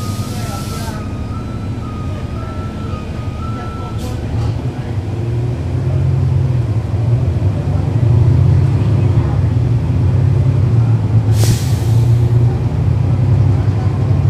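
A bus engine idles with a deep, steady rumble that grows louder.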